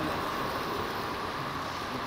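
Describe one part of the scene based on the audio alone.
A model train rattles along its track.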